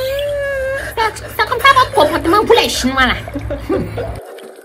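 A young woman shrieks with laughter.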